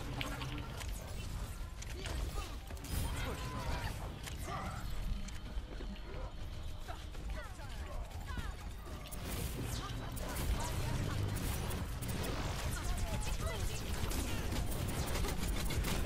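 Rapid energy blasts fire from a video game weapon.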